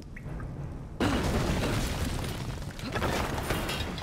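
A metal grate clatters and rattles loudly.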